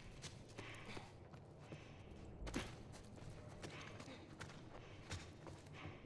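Footsteps scuff softly over debris.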